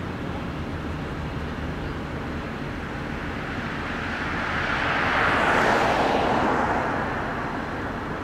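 A car approaches and passes close by on the road.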